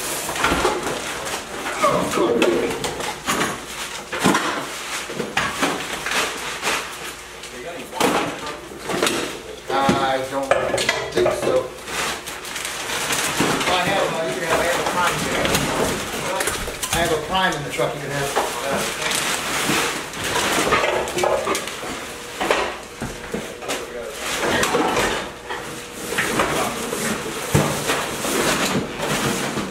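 Plastic trash bags rustle and crinkle as they are handled.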